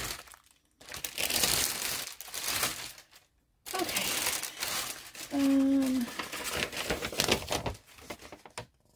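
A plastic wrapper crinkles loudly.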